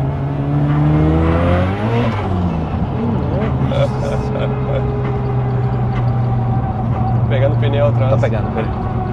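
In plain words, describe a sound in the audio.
Tyres hum steadily on the road.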